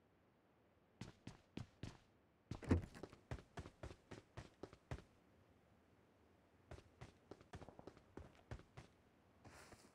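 Quick footsteps thud on the ground.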